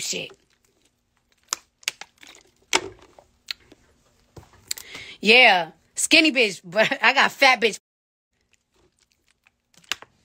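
A young woman gulps water from a bottle.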